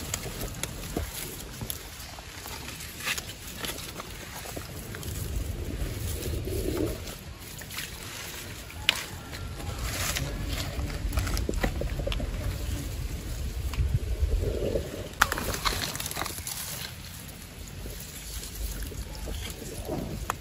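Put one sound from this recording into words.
A small stream of water trickles softly.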